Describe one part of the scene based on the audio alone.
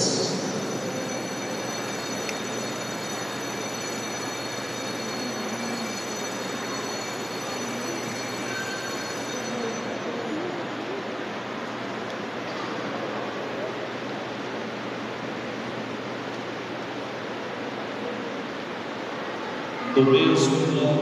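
A crowd of young people murmurs and chatters quietly in a large echoing hall.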